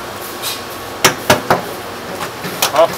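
A lobster's hard shell knocks against metal.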